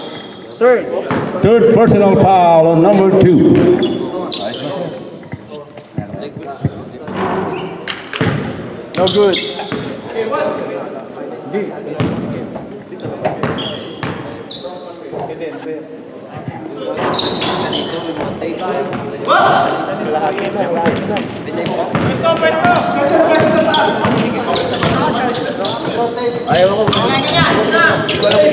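Young men call out and talk loudly in a large echoing hall.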